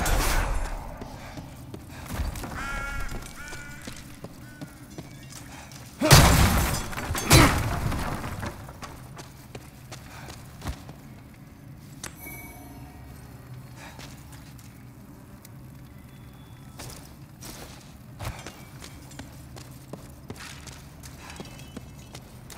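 Footsteps scuff and tap on a stone floor.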